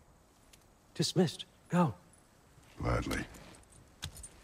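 A man speaks gruffly and loudly.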